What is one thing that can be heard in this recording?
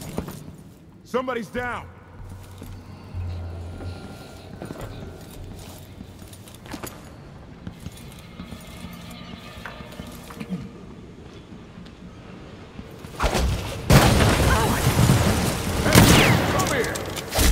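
Footsteps walk over a hard wooden floor.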